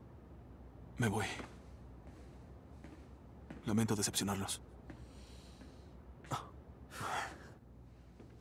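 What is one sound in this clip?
A second man speaks calmly in reply.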